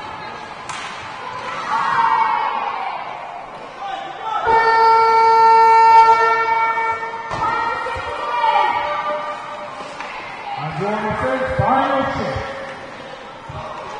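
Children shout and call out in a large echoing rink.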